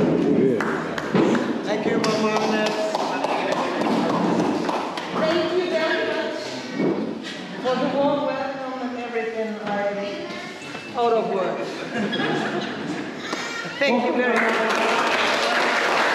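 An elderly woman laughs close by.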